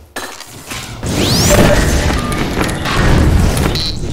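Gunshots crack loudly in an echoing space.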